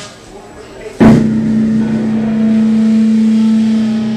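An electric guitar strikes a loud chord that rings on steadily.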